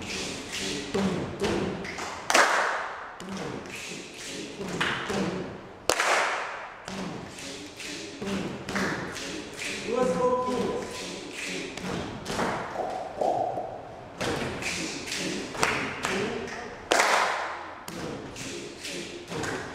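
A man speaks with animation close by, in an echoing room.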